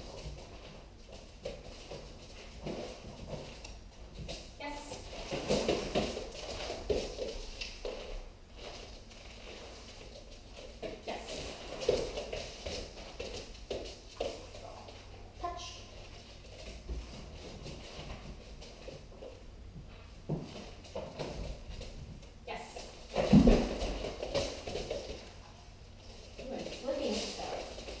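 A dog's paws patter and scuffle on a rubber floor.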